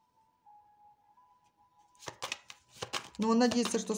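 A playing card slides and taps onto a table.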